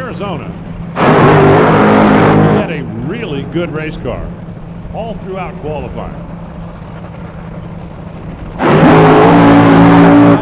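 A dragster engine roars loudly as the car launches down the track.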